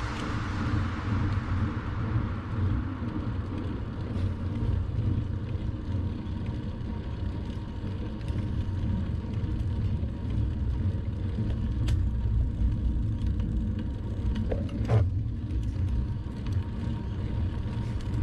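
Wind rumbles steadily across a moving bicycle.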